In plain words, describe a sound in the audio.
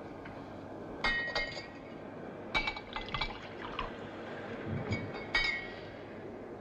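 Glass bottles clink against each other.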